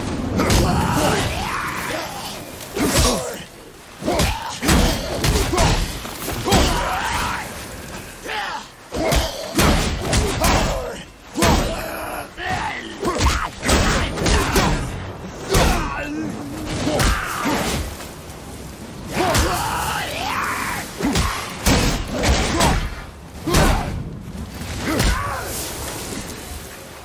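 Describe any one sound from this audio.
Heavy blows and impacts thud and crash again and again in a fight.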